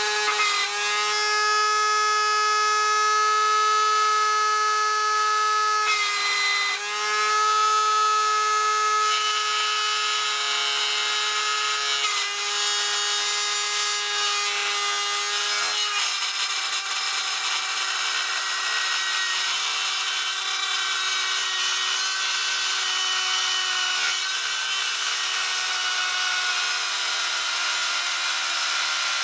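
A rotary tool whines at high speed, grinding metal.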